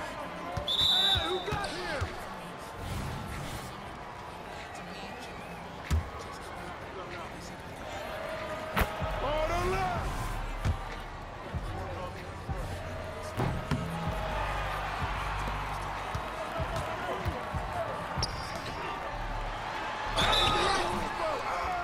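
A referee's whistle blows short and shrill.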